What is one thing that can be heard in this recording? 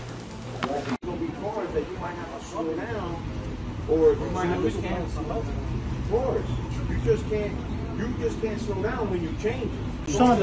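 Men talk with each other outdoors, a few steps away.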